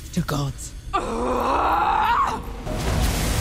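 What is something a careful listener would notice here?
A woman shouts fiercely.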